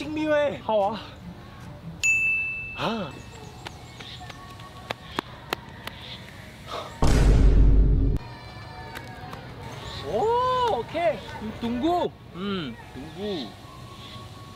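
A young man shouts with animation, close by.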